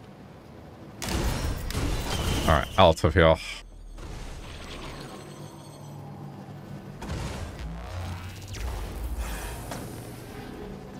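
Magic blasts whoosh and crackle in a video game.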